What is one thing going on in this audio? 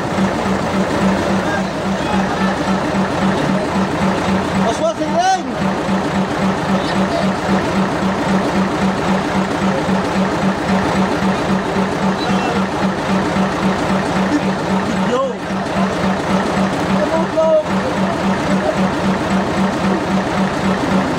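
Men talk on a boat deck.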